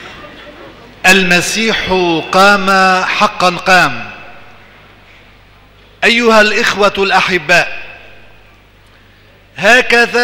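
A man chants through a microphone in a large echoing hall.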